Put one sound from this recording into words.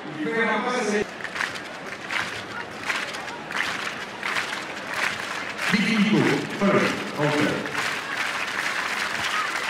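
A large crowd claps in a steady rhythm.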